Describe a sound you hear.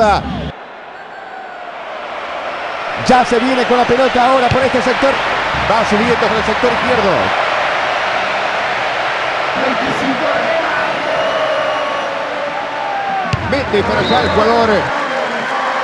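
A stadium crowd roars and swells louder.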